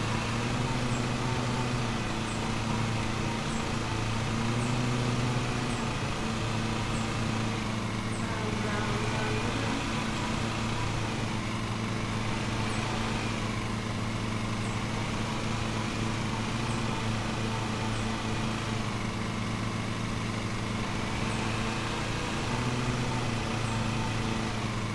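A riding mower engine hums steadily and rises and falls in pitch.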